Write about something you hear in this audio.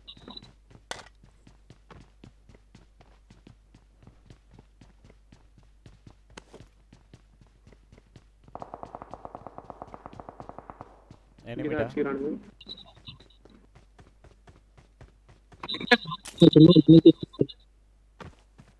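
Footsteps thud quickly and steadily on hard floors.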